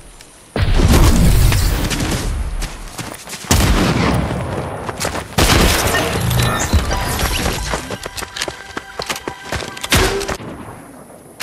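Loud gunshots boom and echo several times.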